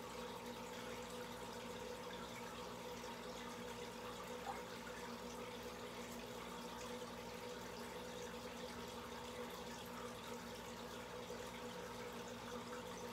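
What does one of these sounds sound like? Air bubbles stream and fizz up through an aquarium.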